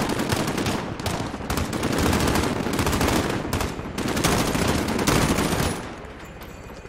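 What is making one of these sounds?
Rifle gunfire crackles in rapid bursts.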